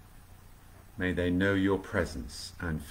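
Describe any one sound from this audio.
A middle-aged man speaks calmly into a close microphone, as if on an online call.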